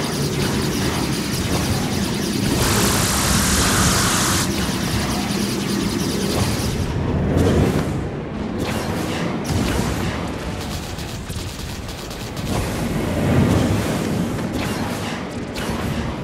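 Laser blasts and explosions from a game crackle and boom.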